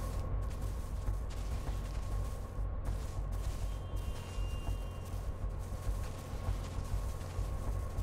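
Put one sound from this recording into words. Soft footsteps crunch slowly over grass and gravel.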